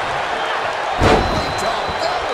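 A body slams onto a wrestling ring mat.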